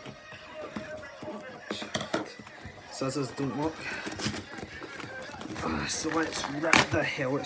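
Cardboard and packing tape rip and crinkle as a box is opened.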